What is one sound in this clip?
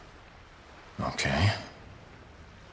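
A young man speaks quietly and close.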